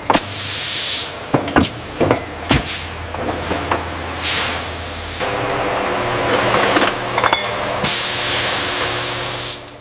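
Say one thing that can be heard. A bottling machine hums steadily.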